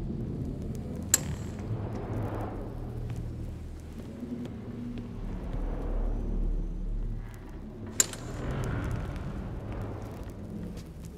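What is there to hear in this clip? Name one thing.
Footsteps tread steadily on the ground.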